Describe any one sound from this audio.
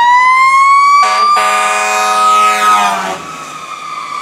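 A fire engine's air horn blasts loudly.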